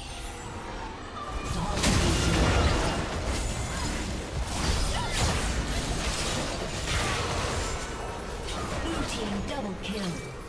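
Magic blasts and weapon clashes from a game battle burst out in quick succession.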